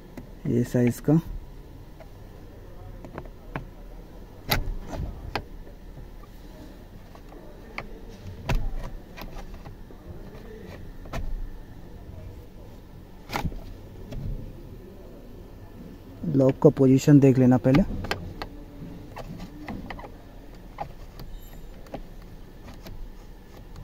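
A screwdriver clicks and scrapes against plastic trim.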